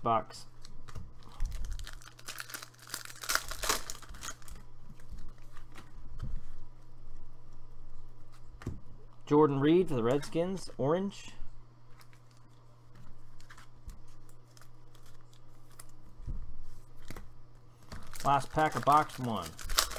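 Stiff cards slide and flick against each other.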